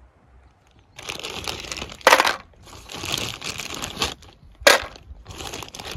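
Ice cubes clatter into a metal cup.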